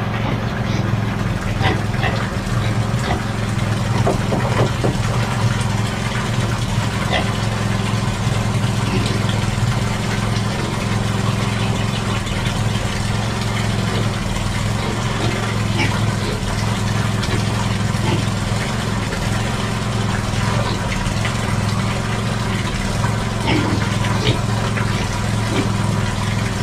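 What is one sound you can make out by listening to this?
Water from a hose splashes steadily into a plastic barrel.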